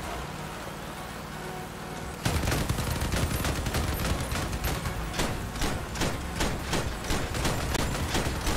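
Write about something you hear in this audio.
A vehicle engine rumbles and roars.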